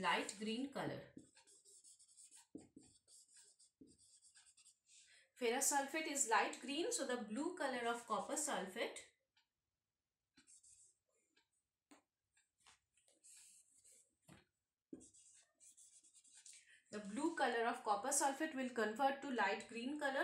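A woman speaks calmly and clearly, as if explaining a lesson.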